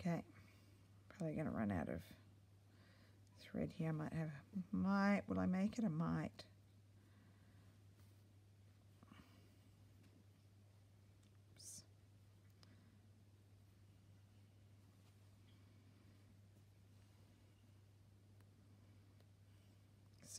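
Thread is pulled through fabric with a soft rustle.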